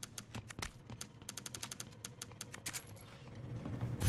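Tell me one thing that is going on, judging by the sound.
Menu selections click in quick succession.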